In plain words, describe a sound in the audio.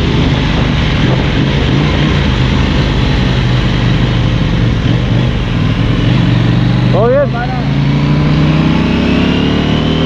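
Other motorcycle engines rev nearby.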